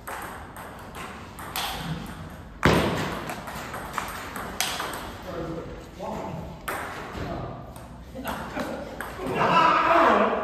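A table tennis ball clicks back and forth on paddles and a table in an echoing hall.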